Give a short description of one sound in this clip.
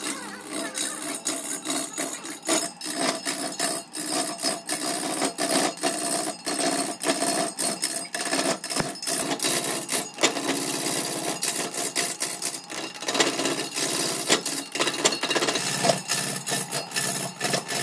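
A lathe chisel scrapes and chatters against a spinning wooden log.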